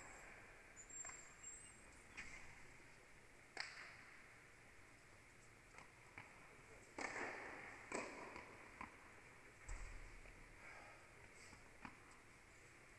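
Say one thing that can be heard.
Tennis balls bounce and thud on a hard court in a large echoing hall.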